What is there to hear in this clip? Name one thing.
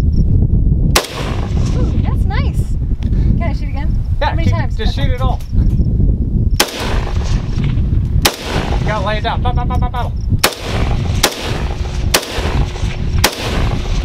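A rifle fires sharp, loud single shots outdoors.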